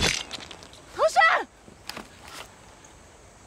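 A young woman cries out in anguish.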